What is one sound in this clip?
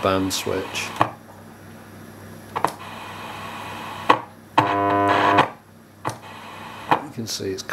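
Test probes click against metal contacts.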